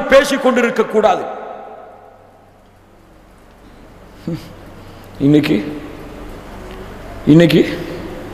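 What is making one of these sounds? A young man preaches forcefully into a microphone, his voice echoing through a loudspeaker in a reverberant hall.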